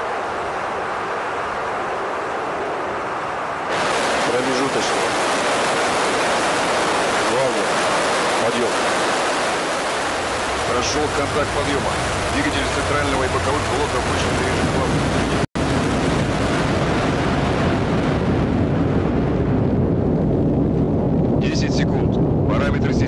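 Rocket engines roar loudly and rumble steadily.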